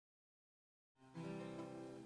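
A guitar starts to play.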